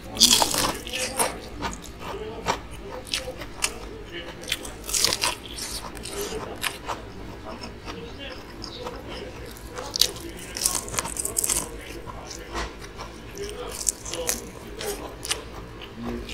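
A man crunches loudly on crispy fried food up close.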